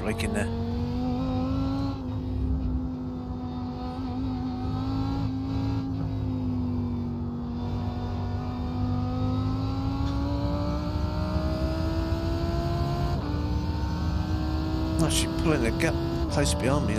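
A racing car engine drones steadily, then climbs in pitch as the car speeds up.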